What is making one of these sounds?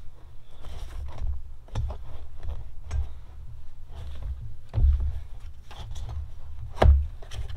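A screwdriver clicks and scrapes against plastic.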